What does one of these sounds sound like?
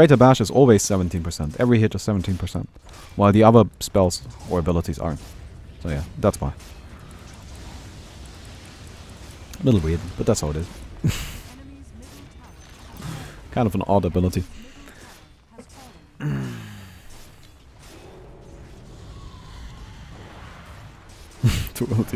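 A young man talks with animation, close to a microphone, in short bursts.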